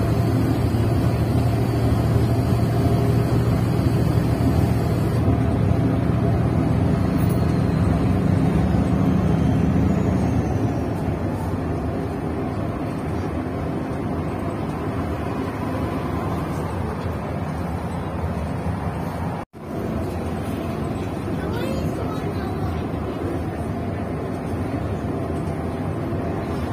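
A bus engine rumbles steadily from inside the cabin, louder at first and then easing.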